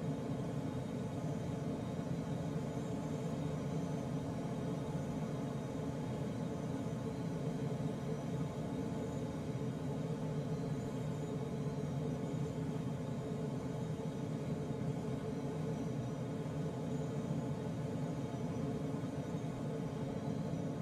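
Wind rushes steadily past a glider's canopy in flight.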